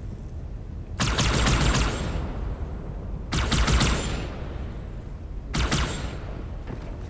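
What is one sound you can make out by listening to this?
An energy weapon fires in loud crackling bursts.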